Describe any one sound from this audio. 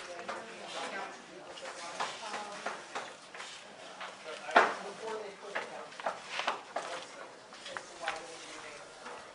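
A receipt printer clicks and whirs as it feeds out paper.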